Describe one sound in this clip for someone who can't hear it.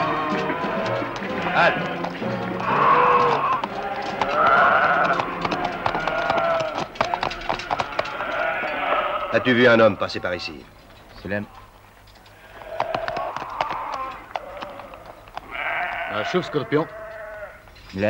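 Horses' hooves clop on stony ground.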